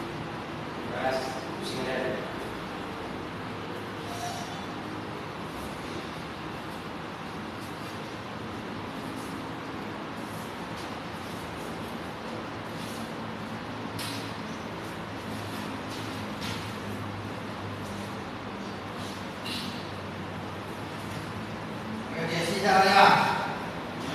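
A man speaks briefly nearby.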